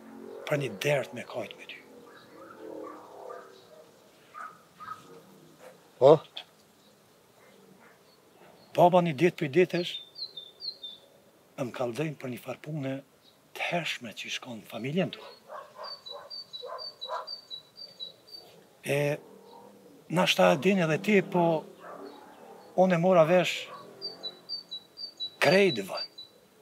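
A man speaks calmly nearby, in short phrases with pauses.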